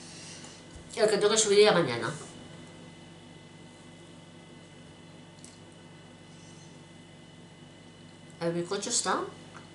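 A middle-aged woman speaks close by, in short animated bursts.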